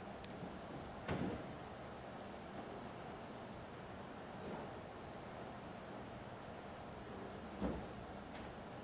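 A man sets objects down on a table with soft knocks.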